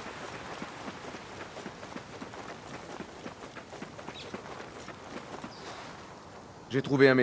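Footsteps run quickly over sandy ground.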